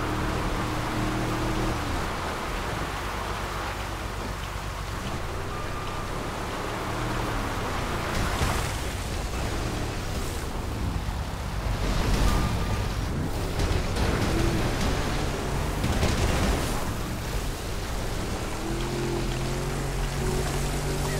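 A boat engine roars and revs loudly.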